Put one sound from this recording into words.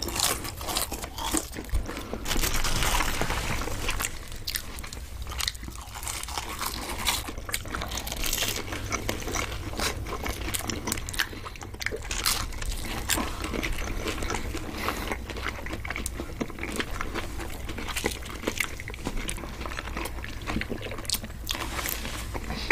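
Crispy food crunches loudly and wetly close to a microphone.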